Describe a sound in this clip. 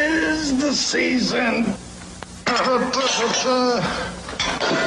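A man sings a cheerful tune with animation.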